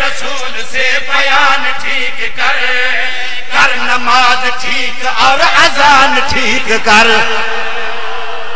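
A group of men sing together in chorus.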